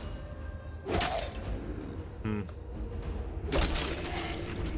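A sword swings and strikes with a heavy clang.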